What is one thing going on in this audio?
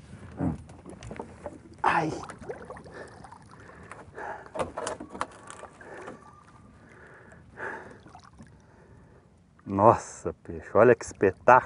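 A large fish splashes in water beside a boat.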